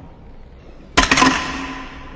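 A single footstep strikes a hard metal floor.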